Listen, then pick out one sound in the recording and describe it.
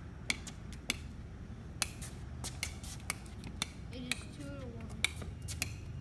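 A basketball bounces sharply and repeatedly on concrete outdoors.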